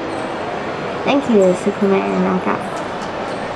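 A young woman sings briefly into a microphone.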